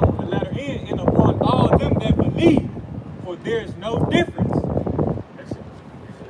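A young man reads aloud with strong rhythm, close by.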